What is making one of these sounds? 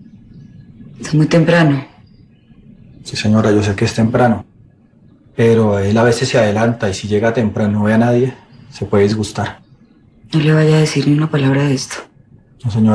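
A man speaks in a low, calm voice close by.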